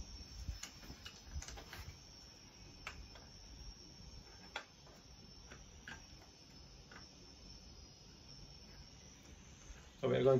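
Small metal parts click and knock as a man adjusts a mount.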